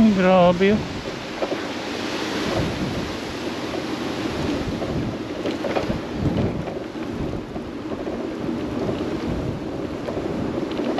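Tall grass rustles in the wind.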